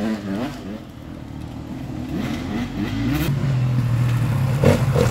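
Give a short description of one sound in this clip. A second dirt bike approaches from a distance.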